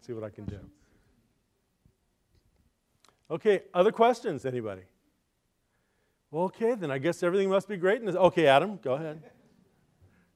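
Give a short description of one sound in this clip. A middle-aged man speaks calmly into a microphone in a large room, in short phrases with pauses.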